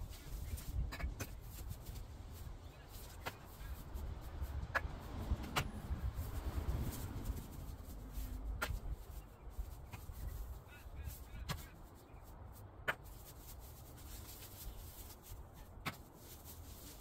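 Rocks and bricks clunk as they are tossed onto a pile.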